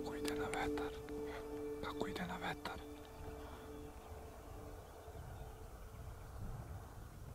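A deer's hooves rustle softly through low crops.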